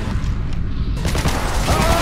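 A pistol fires from close by.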